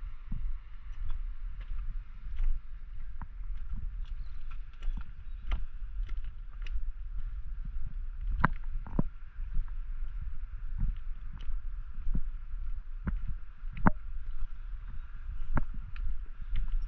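Footsteps crunch on a stony path.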